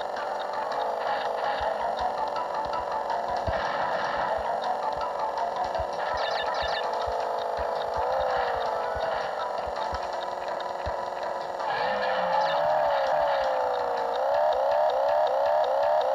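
A jet ski engine whines and revs up and down.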